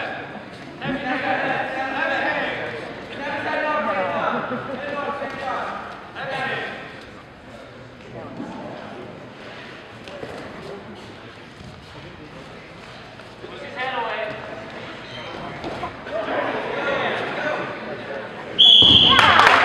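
Men shout encouragement from the sidelines, echoing in a large hall.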